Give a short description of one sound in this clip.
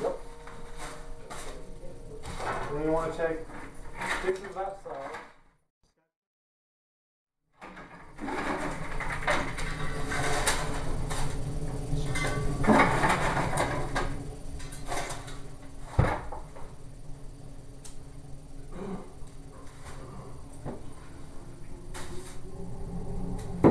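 Plastic buckets bump and knock against the floor.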